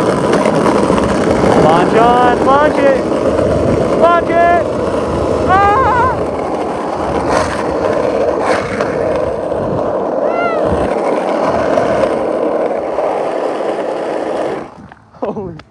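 Wind rushes loudly past while riding fast outdoors.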